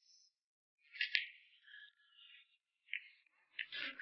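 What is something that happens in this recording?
A cue ball clacks against other billiard balls.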